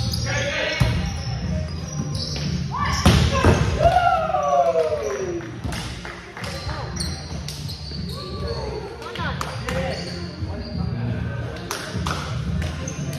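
A volleyball is hit and bounces on a hard floor.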